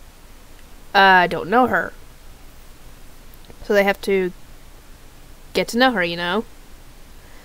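A woman speaks close to a microphone in short, expressive bursts.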